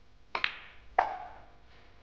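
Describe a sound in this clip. Snooker balls clack together.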